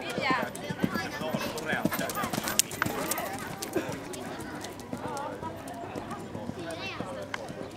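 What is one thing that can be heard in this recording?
A horse's hooves thud on soft sand.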